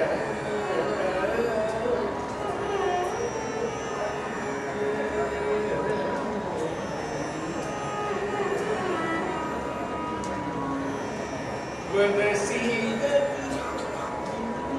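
A violin plays along with the singer.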